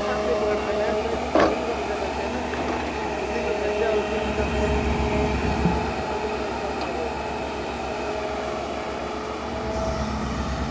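A diesel excavator engine rumbles and whines steadily close by.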